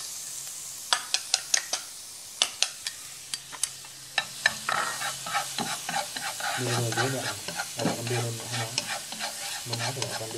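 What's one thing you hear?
Chopsticks scrape and tap against a frying pan.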